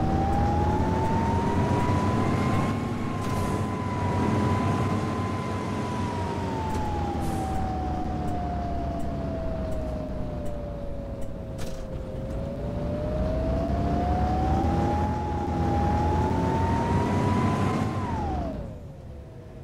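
A bus engine hums and whines, its pitch rising and falling with speed.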